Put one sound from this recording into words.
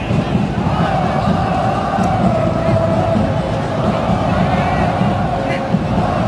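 A huge stadium crowd chants and sings loudly in unison.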